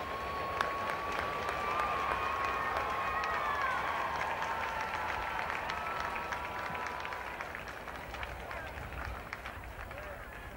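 A large crowd cheers and whistles in open air, then slowly dies down.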